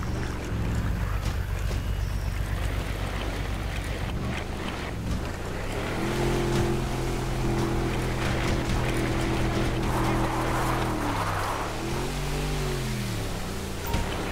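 A speedboat engine drones and revs.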